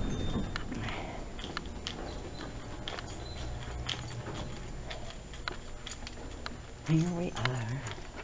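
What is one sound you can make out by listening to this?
Footsteps thud softly along a corridor.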